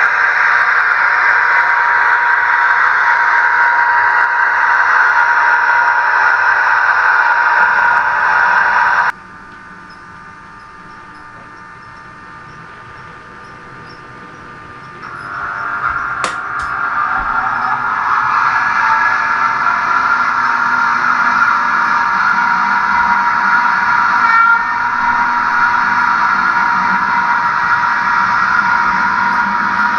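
A model train's motor whirs steadily as it runs along the track.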